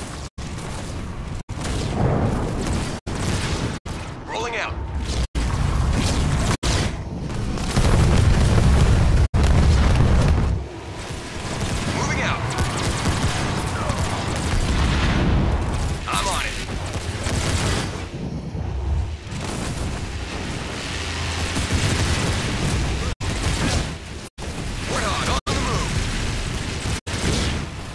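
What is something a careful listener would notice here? Gunfire and laser blasts crackle in a battle.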